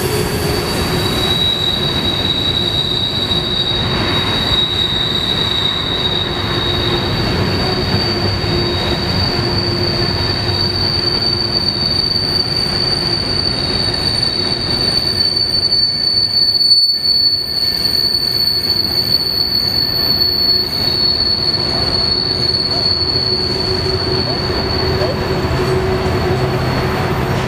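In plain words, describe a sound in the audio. A long freight train rumbles and clatters steadily past close by.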